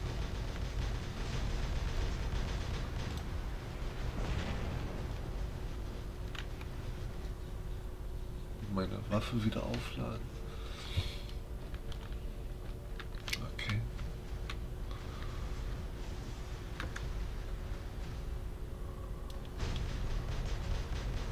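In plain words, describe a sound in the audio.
Heavy guns fire rapid bursts of shots.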